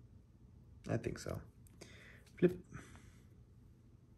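A playing card is flipped over in the hands.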